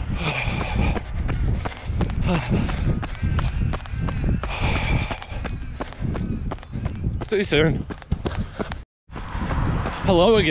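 Footsteps thud steadily on a path.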